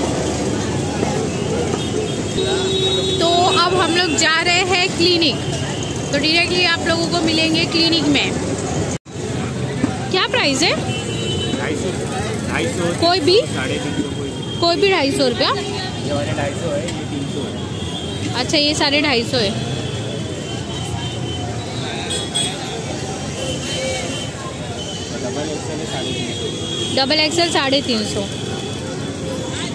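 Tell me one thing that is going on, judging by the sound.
A crowd chatters in the background.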